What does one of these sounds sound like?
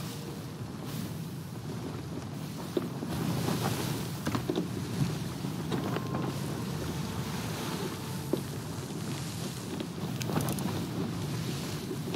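Rough seas surge and crash against a wooden ship's hull.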